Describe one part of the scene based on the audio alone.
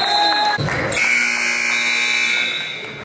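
A loud buzzer sounds steadily.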